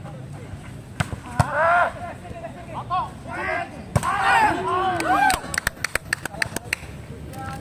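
A volleyball is struck with sharp slaps.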